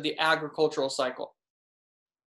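A young man speaks calmly and close up, slightly muffled as if through a webcam microphone.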